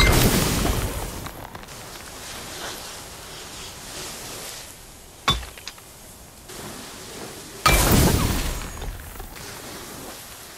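A fiery blast roars and crackles.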